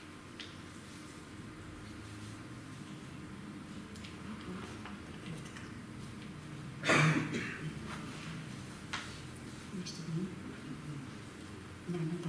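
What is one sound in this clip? Sheets of paper rustle.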